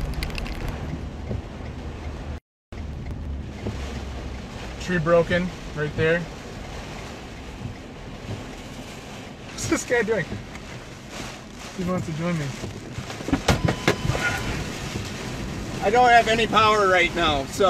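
Windshield wipers swish across the glass.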